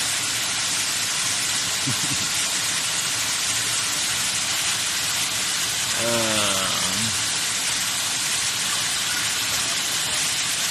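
A waterfall rushes and splashes steadily into a pool nearby.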